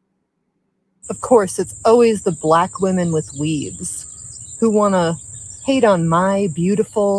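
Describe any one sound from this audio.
A young woman speaks with animation, close to a microphone.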